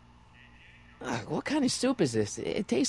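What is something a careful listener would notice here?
A young man speaks loudly and anxiously, close by.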